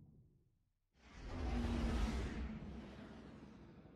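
A spaceship swoops in with a deep, loud rushing roar.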